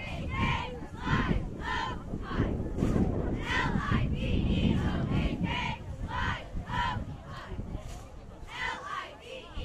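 A group of young men shouts and chants in rhythm at a distance, outdoors.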